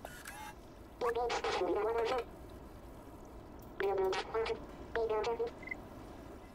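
A robot chirps in warbling electronic tones.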